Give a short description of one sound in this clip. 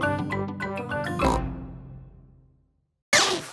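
A short cheerful music jingle plays and fades.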